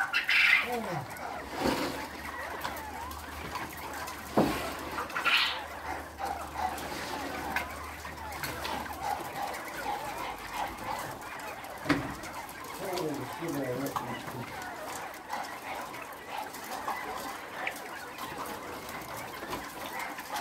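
A wire cage door rattles and clanks.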